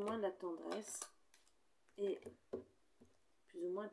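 A card taps down on a table.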